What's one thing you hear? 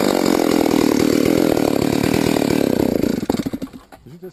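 A chainsaw chain cuts into a wooden log.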